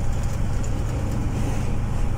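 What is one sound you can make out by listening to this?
A truck passes by in the other direction.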